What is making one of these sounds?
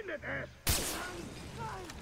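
A sniper rifle fires a shot.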